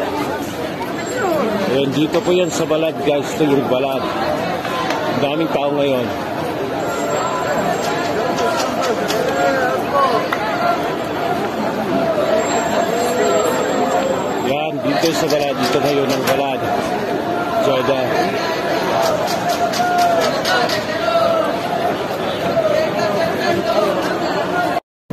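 A large crowd of men and women chatter and call out loudly all around, outdoors.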